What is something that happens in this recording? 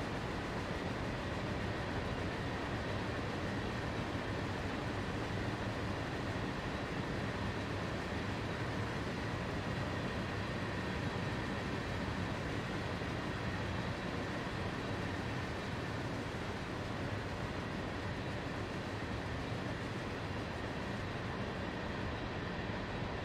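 A freight train rumbles and clatters steadily over a steel bridge.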